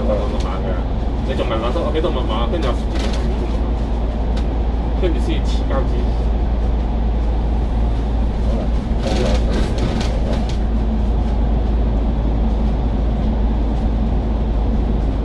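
Traffic roars and hisses around inside a tunnel.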